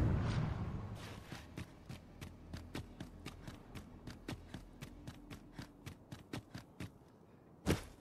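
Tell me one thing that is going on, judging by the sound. Footsteps tap on stone at a steady pace.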